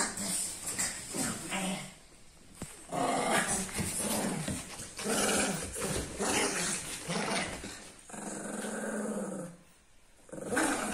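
Dogs scuffle and thump on a cushion.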